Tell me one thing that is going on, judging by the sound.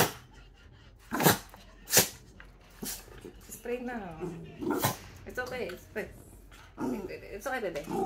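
A small dog growls and snarls.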